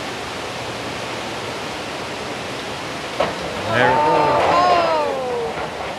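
Heavy rain pours down in a roaring wind.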